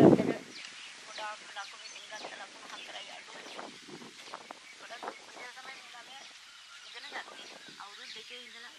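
An elderly woman speaks with feeling, close by.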